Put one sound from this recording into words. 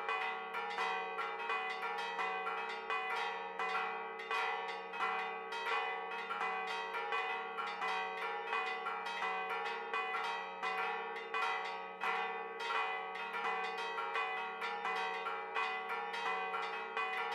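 Church bells ring out in fast, overlapping peals.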